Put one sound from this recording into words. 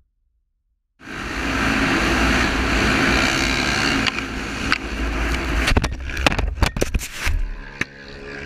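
Motorbike and quad engines roar loudly.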